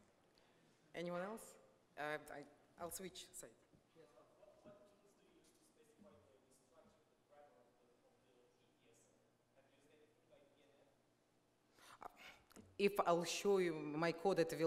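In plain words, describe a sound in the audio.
A woman speaks to an audience through a microphone in a large echoing hall.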